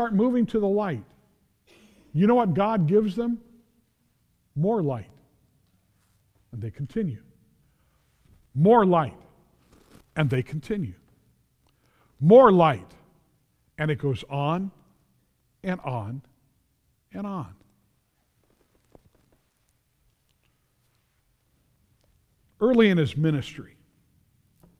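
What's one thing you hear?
An elderly man preaches with feeling through a microphone in a large room, pausing between phrases.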